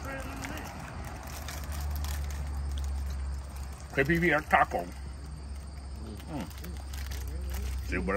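A candy wrapper crinkles as a man tears it open.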